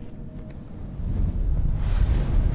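A ghostly magical whoosh swells up.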